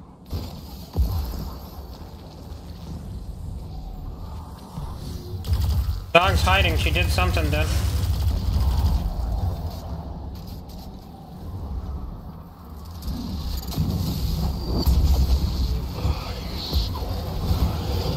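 Rapid gunfire crackles and booms.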